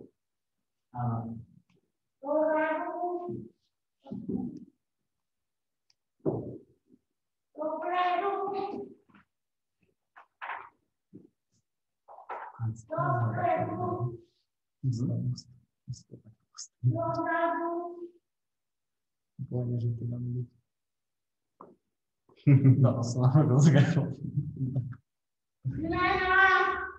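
A young boy speaks in short bursts through an online call.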